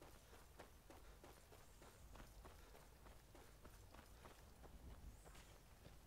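Footsteps crunch quickly over dirt and grass.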